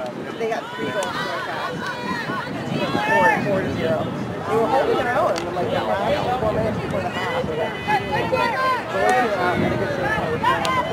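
Hockey sticks knock against a ball with sharp clacks.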